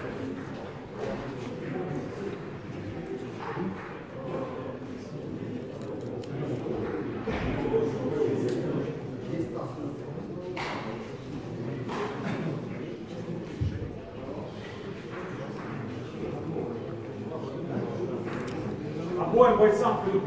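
A man talks to a small group nearby.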